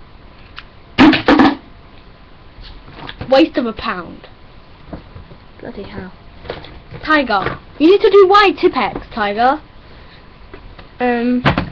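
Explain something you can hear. A young girl talks animatedly close to a microphone.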